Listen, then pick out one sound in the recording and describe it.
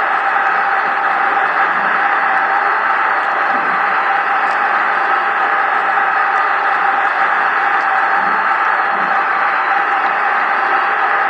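A large crowd roars and cheers, heard through a television speaker.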